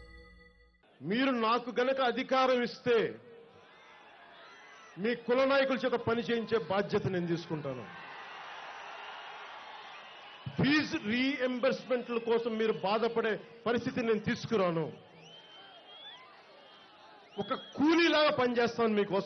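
A man speaks forcefully into a microphone over loudspeakers.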